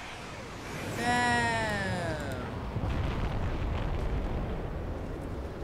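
A loud explosion booms and rumbles deeply.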